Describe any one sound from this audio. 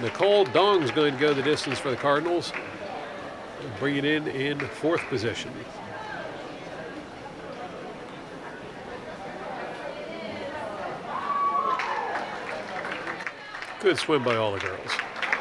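Swimmers splash through water.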